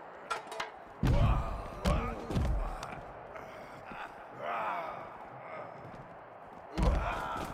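Heavy bodies slam down onto a hard floor with loud thuds.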